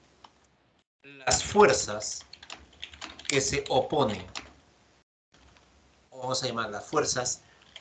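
A man speaks calmly through a microphone, in short bursts with pauses.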